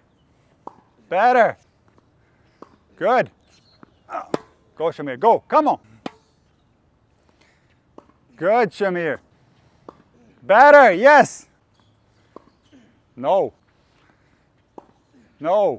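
A tennis racket strikes a ball with sharp pops, again and again.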